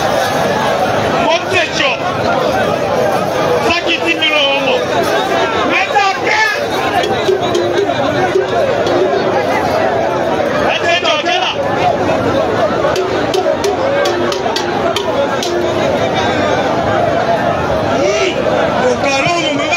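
A man shouts with animation nearby.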